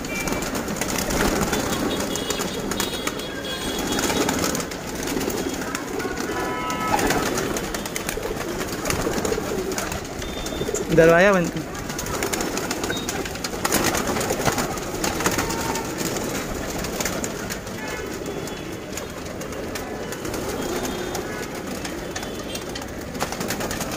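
Many pigeons coo softly and steadily.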